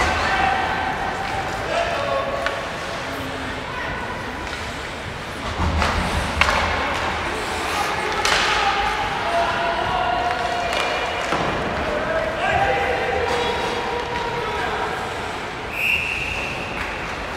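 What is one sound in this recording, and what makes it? Young players shout to each other across the ice.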